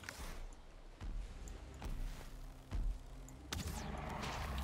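A heavy club thuds in repeated blows.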